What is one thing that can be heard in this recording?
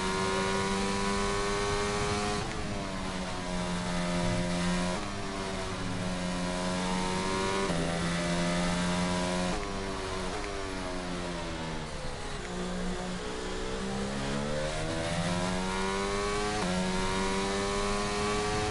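A racing car engine roars at high revs, dropping in pitch with each gear change and climbing again.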